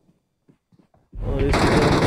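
Gunshots fire in a rapid burst close by.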